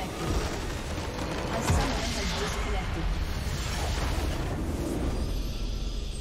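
A structure collapses with a loud magical explosion.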